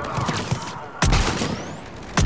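A sniper rifle fires a loud, sharp shot.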